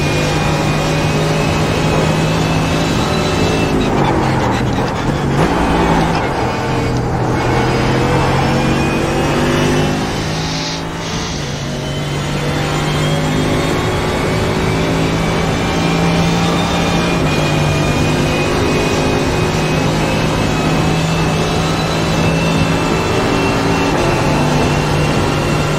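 A racing car engine roars loudly, dropping in pitch as it brakes and shifts down, then climbing steadily as it speeds up through the gears.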